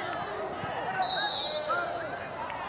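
A referee blows a short whistle blast.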